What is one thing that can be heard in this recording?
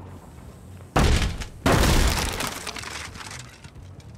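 Wooden boards crash and splinter loudly.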